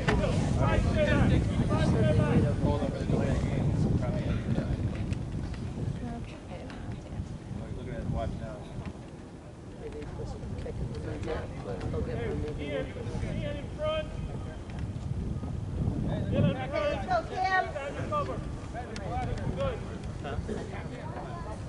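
Young players shout to each other from across an open field.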